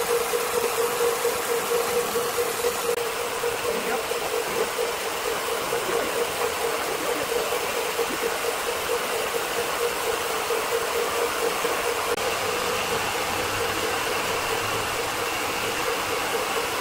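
A large band saw cuts through a hardwood log with a steady humming whine.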